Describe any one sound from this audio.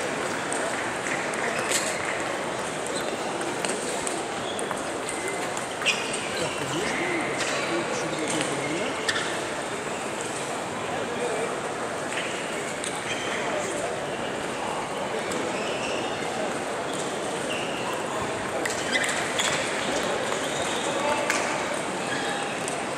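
Table tennis balls click on tables and paddles nearby and far off.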